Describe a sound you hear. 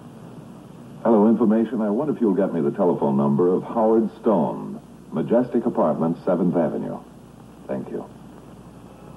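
A man speaks into a telephone, calmly and close by.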